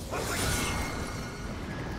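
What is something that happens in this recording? A bright magical whoosh bursts out and fades.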